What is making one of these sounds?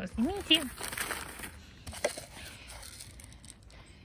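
Seeds patter onto the ground from a plastic jar.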